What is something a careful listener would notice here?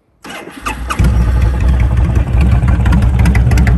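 A motorcycle engine idles with a loud, steady rumble.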